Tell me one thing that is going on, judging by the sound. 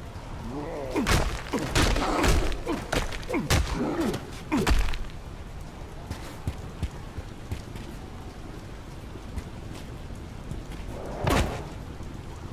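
Heavy blows and crashes strike in quick bursts.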